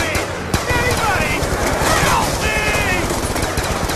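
A pistol fires in quick shots.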